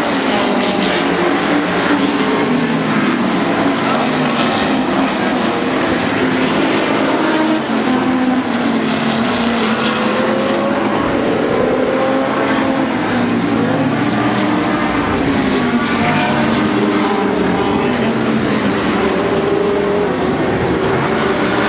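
A racing car engine roars loudly as it speeds past, its pitch rising and falling.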